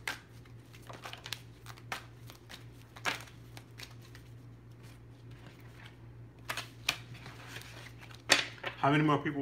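Playing cards shuffle and tap on a table.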